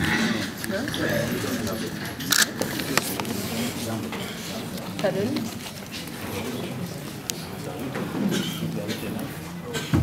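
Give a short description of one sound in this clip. A tissue rustles softly as a hand wipes a face and hair.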